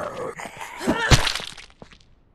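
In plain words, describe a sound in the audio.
A heavy blow lands with a loud thud.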